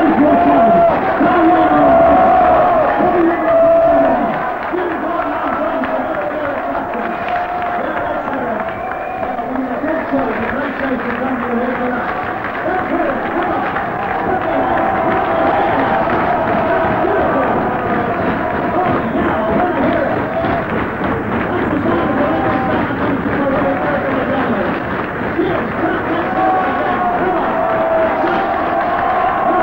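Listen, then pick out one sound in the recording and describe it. An electric guitar plays through an amplifier.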